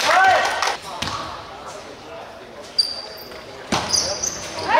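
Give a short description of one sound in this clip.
A basketball thuds against a hard floor.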